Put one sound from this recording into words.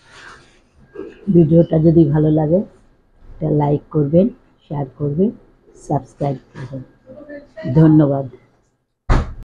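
An older woman speaks with animation, close to a microphone.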